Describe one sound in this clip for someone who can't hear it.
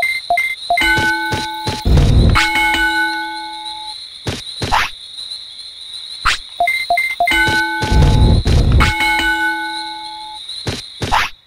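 Short electronic chimes and beeps ring out in a steady run, then stop.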